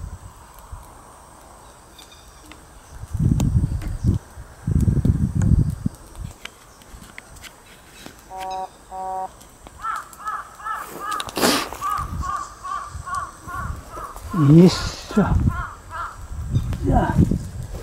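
A small smouldering fire crackles faintly.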